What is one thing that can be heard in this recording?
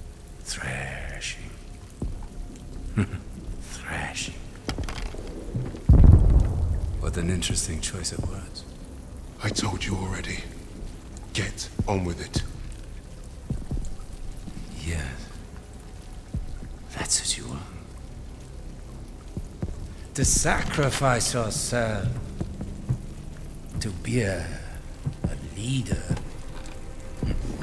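A man speaks calmly and menacingly, close by.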